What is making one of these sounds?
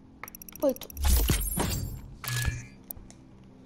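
A heavy mechanical whoosh and clank confirm a game upgrade.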